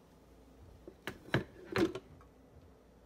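A coffee carafe clinks against a coffee maker.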